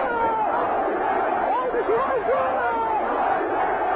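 A large crowd cheers and shouts loudly.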